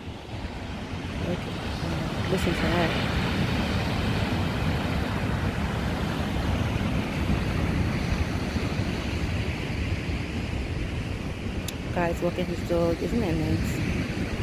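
Waves crash and roll onto a beach.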